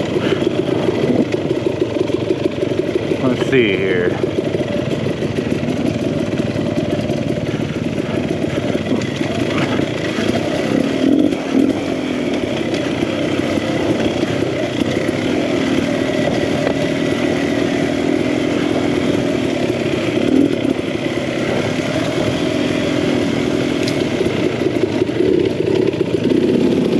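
A dirt bike engine drones and revs up close.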